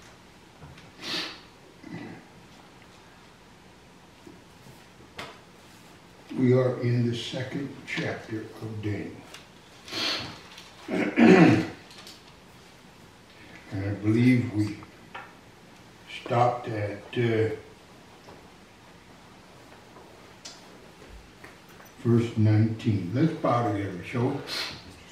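An elderly man reads aloud slowly into a microphone, with long pauses.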